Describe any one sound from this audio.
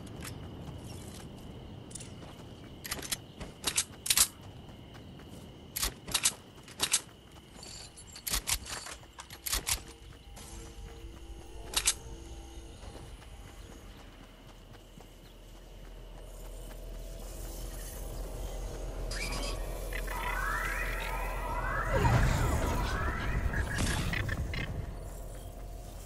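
Footsteps run quickly over grass and pavement.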